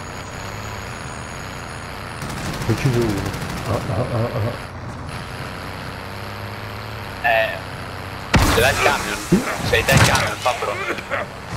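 A heavy truck engine rumbles steadily as the truck climbs.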